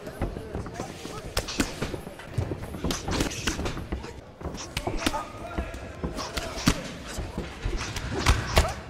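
Gloved punches land on bodies with sharp thuds.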